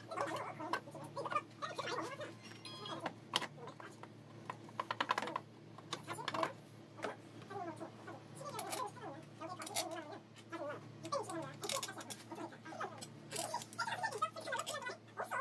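Metal parts clink and tap close by.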